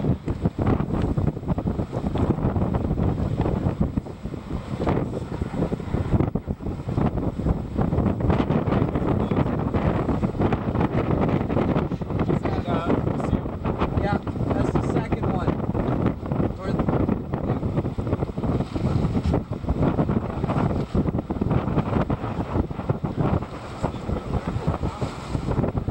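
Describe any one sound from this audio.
Strong wind roars and buffets the microphone outdoors.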